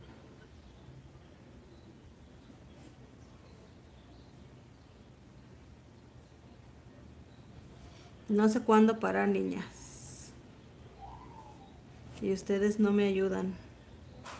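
A paintbrush softly strokes across cloth.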